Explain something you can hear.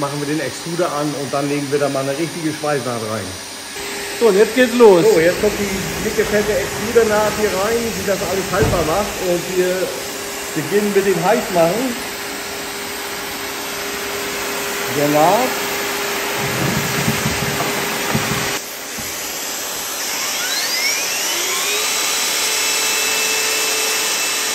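A hot air welding gun blows with a steady hiss.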